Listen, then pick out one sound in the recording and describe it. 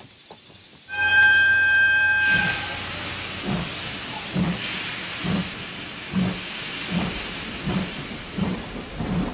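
A steam locomotive chugs with rhythmic puffs of hissing steam.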